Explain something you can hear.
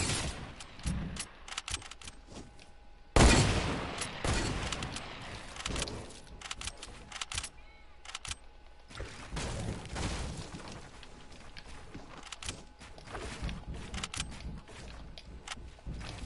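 Wooden walls and ramps are built with quick clicking thuds.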